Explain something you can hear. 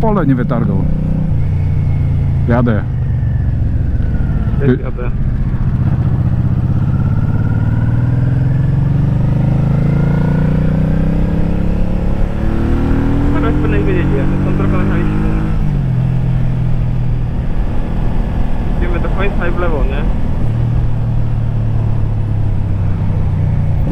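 A motorcycle engine hums loudly up close, its pitch rising as it speeds up and dropping as it shifts gears.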